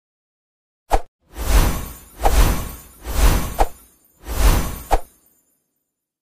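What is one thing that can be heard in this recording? Heavy thuds and booms ring out as toy monsters clash in battle.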